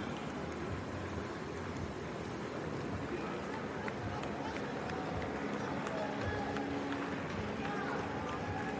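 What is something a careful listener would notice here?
A race walker's shoes tap quickly on pavement.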